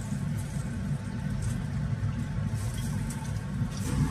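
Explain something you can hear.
Food drops into water in a metal pot.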